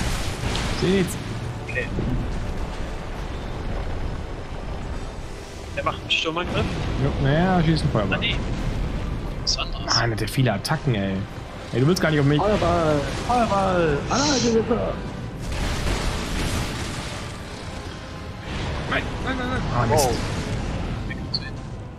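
Game combat sounds clash and roar with fiery blasts.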